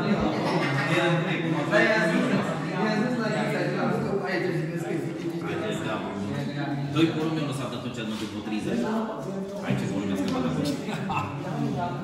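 Several men talk casually nearby.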